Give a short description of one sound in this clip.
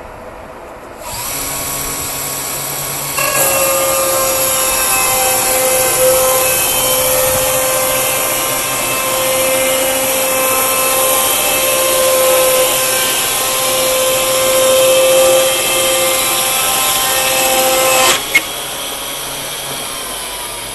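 The engine of a band sawmill runs.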